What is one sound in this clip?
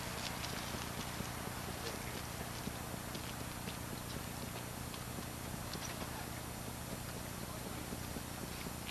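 A campfire crackles and pops nearby.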